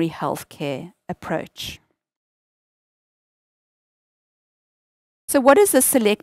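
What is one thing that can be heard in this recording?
A woman speaks calmly into a close microphone, pausing between phrases.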